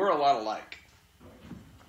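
A middle-aged man speaks calmly through a loudspeaker.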